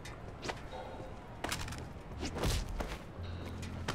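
Punches land with dull thuds during a fistfight.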